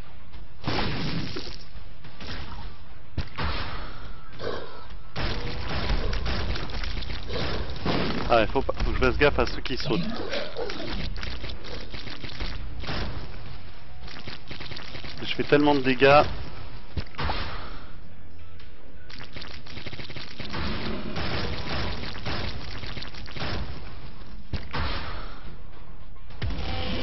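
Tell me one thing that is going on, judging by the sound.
Game sound effects of shots and splatters play continuously.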